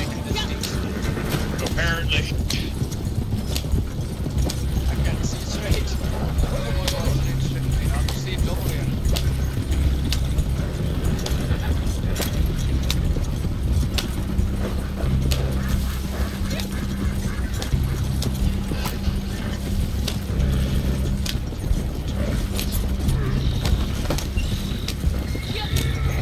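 Hooves clop steadily on the ground.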